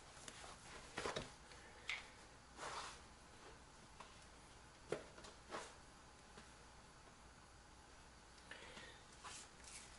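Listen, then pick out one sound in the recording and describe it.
A rubber ring rustles and flaps softly in a person's hands.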